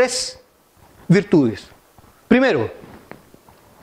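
A middle-aged man speaks with emphasis through a microphone, in short bursts with pauses.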